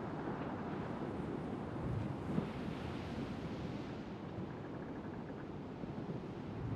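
Waves wash and roll steadily against a sailing ship's hull.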